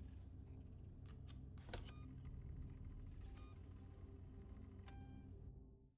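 Buttons click sharply on a panel, one press at a time.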